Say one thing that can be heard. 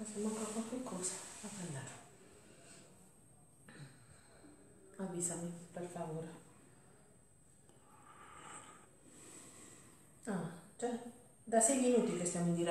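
A middle-aged woman talks calmly nearby, in short bursts with pauses.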